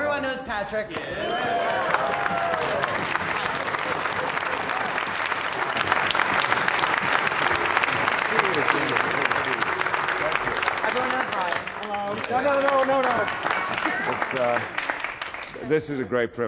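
An orchestra applauds loudly.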